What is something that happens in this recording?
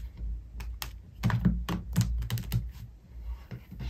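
Playing cards riffle and flick as they are shuffled.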